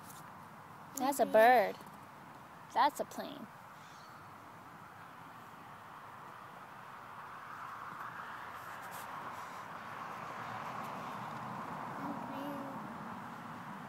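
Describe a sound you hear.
A toddler babbles in a high voice close by.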